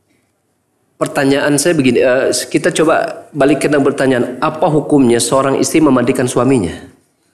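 A man speaks with animation into a microphone, close by.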